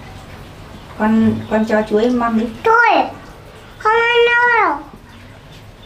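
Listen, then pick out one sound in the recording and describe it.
A young girl speaks in a small, high voice close by.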